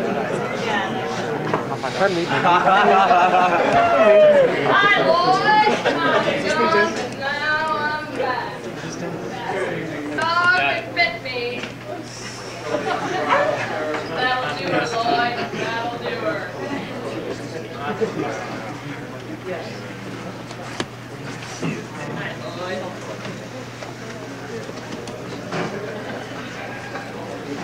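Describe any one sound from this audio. A crowd of adults chatters and talks nearby.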